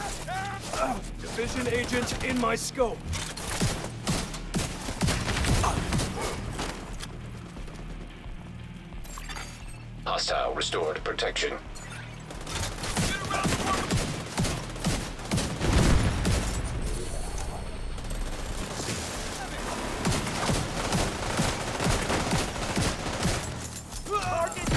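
Rapid gunfire cracks in bursts.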